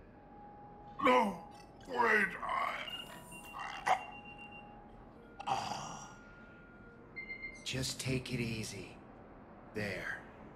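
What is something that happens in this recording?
A man speaks in a strained, weary voice.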